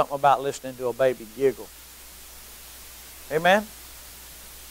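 A middle-aged man speaks calmly through a clip-on microphone.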